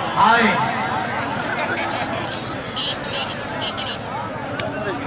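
A large outdoor crowd chatters and calls out in the distance.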